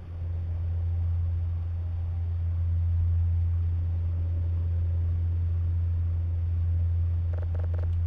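Electronic equipment hums steadily and low.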